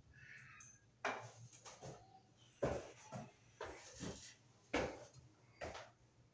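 Tools tap and knock against a wall.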